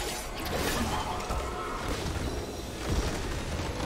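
Spell effects whoosh and crackle in a busy fight.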